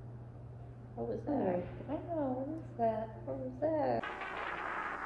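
A second teenage girl answers close by.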